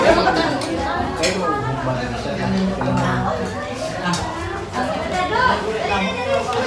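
Serving spoons clink against metal food trays.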